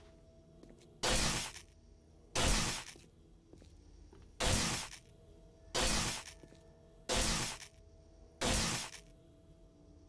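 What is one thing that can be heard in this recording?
A blade hacks into flesh with wet thuds, again and again.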